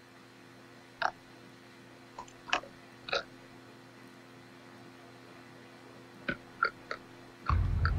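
Short soft interface clicks sound as menu items are selected.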